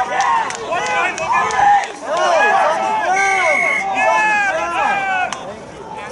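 Young players shout and call to each other across an open field, heard from a distance.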